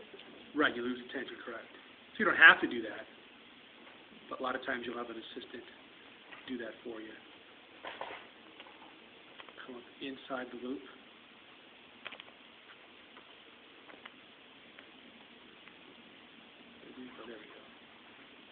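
A man speaks calmly close by, in short phrases.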